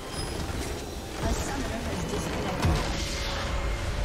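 A loud explosion booms and crumbles.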